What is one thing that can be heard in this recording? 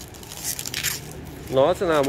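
Plastic wrap crinkles under a hand.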